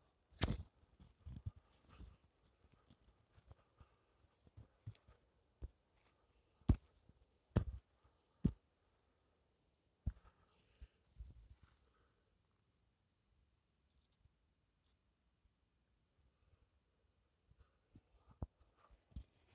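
Footsteps crunch through dry leaves on the ground.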